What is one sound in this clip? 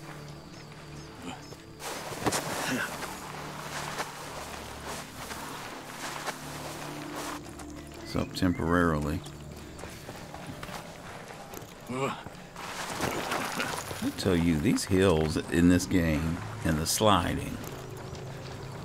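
Footsteps rustle through tall grass and brush.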